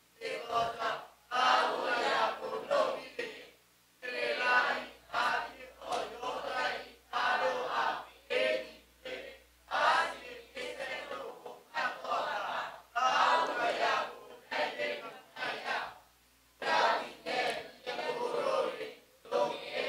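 A man speaks with feeling into a microphone, heard over loudspeakers in a large room.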